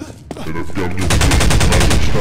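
An energy weapon fires with a loud buzzing burst.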